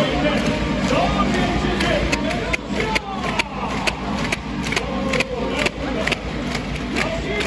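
Many spectators clap their hands in rhythm.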